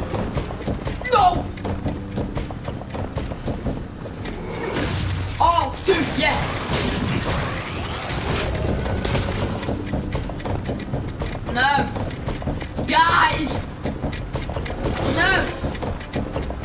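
A stone golem roars and grunts.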